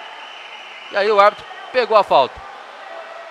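A referee's whistle blows several sharp blasts in a large echoing hall.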